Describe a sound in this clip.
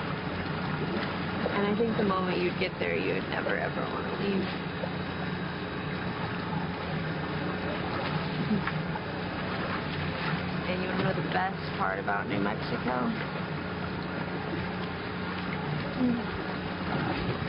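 A second young woman answers softly nearby.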